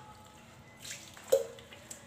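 Water pours into a bowl.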